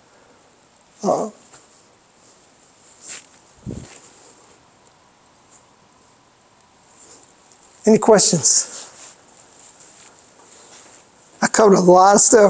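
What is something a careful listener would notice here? An older man speaks in short bursts, close by.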